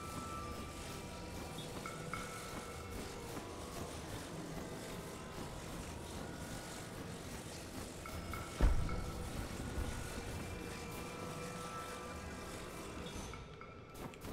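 A magical humming drones steadily.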